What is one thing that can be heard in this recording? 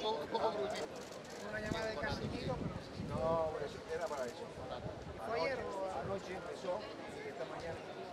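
A man talks calmly outdoors, close by.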